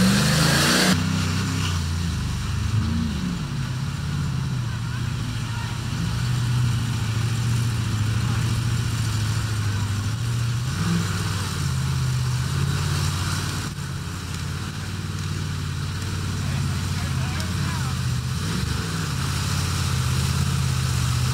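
A truck engine roars and revs as it churns through deep mud.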